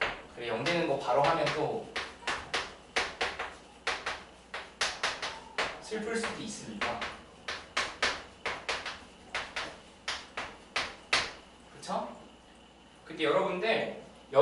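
A man speaks calmly, as if teaching a class.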